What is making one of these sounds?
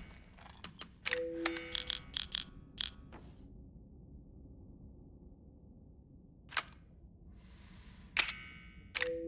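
Game menu sounds click and chime as items are selected.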